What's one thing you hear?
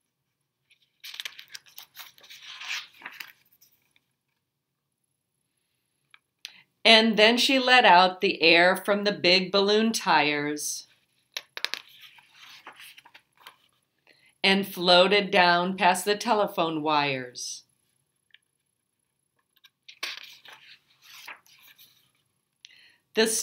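Book pages turn with a soft rustle.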